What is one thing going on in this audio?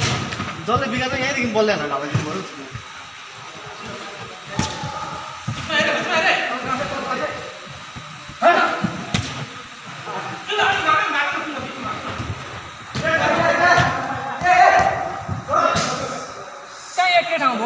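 Young men shout and call out to each other nearby.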